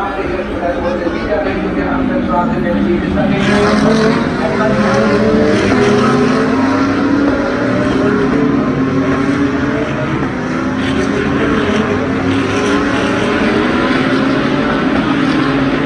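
Many race car engines roar loudly, rising and falling in pitch as they pass.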